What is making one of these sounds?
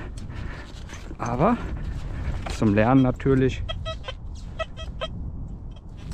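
Boots crunch on dry, clumpy soil.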